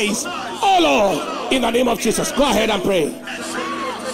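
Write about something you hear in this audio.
Voices in a crowd shout out loudly and excitedly.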